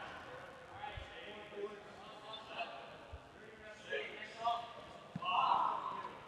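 A rubber dodgeball thuds on a hardwood floor.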